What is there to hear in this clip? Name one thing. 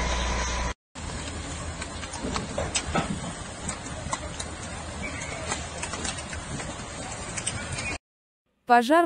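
Water from a fire hose hisses onto a burning building.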